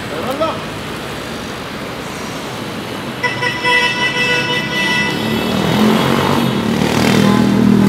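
Car engines hum and tyres roll past on a busy street.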